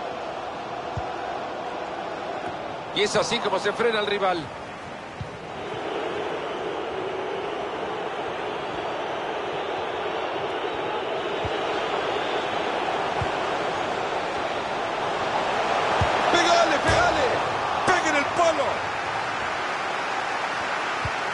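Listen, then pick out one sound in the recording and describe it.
A football is kicked with dull thumps now and then.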